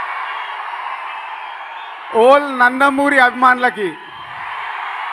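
A large crowd cheers and whistles in a big hall.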